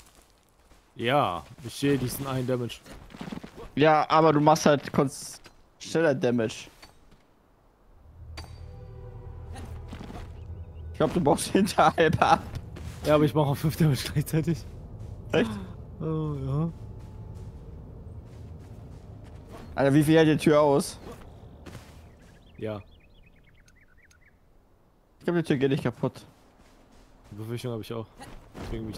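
A young man talks with animation into a close microphone, with pauses.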